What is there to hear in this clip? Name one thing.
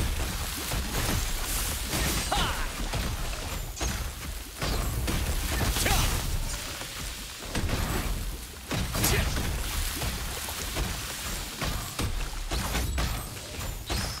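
Weapon strikes clash sharply again and again.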